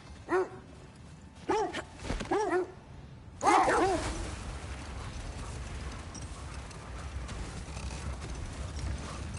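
Sled runners hiss over snow.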